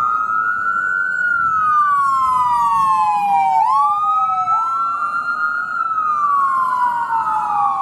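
An ambulance siren wails loudly, sweeping slowly down and up in pitch.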